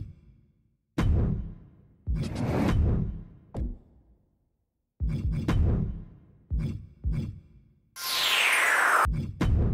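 Game menu sounds whoosh and thud as selections change.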